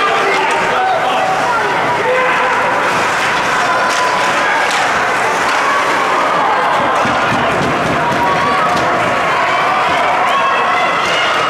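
A crowd of spectators chatters and cheers in a large echoing rink.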